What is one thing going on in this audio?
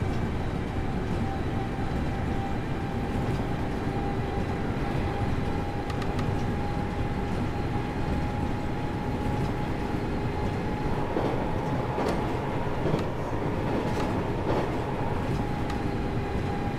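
Train wheels rumble and clack over the rails.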